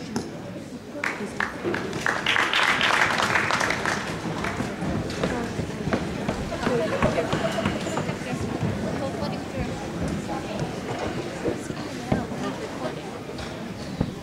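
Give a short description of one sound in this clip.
A drummer plays a drum kit with cymbals.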